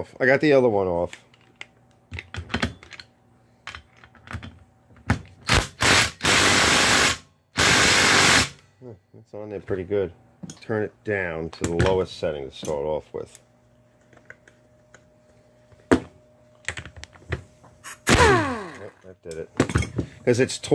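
Metal parts clink and tap against each other.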